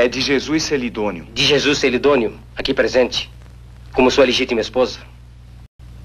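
A man speaks solemnly and clearly, close by.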